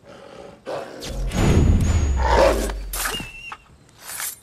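A blade slashes and strikes with heavy thuds.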